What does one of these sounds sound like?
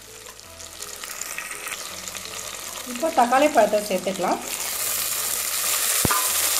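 Food sizzles and crackles in hot oil in a pan.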